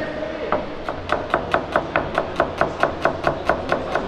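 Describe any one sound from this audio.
A knife chops quickly on a cutting board, in a fast, even rhythm.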